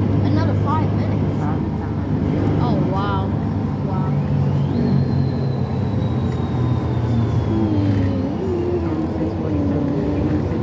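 A vehicle engine rumbles steadily from inside while driving.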